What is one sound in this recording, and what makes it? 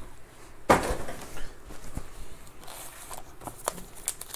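Foil packs rustle and crinkle as hands pick them up.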